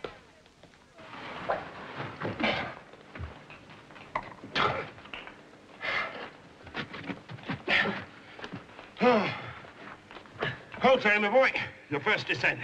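A man breathes heavily and grunts as he climbs.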